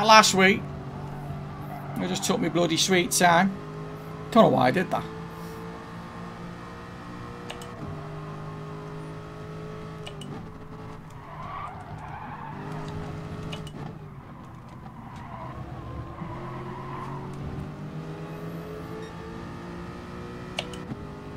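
A racing car engine drones and shifts pitch with gear changes.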